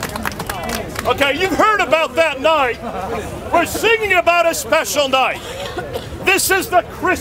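An elderly man speaks loudly and with animation to a crowd outdoors.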